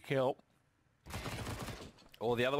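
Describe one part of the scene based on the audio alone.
Rapid gunshots crack in a quick burst.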